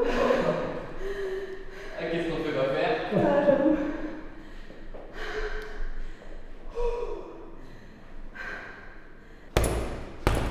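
A young woman breathes hard and speaks in short bursts, close by.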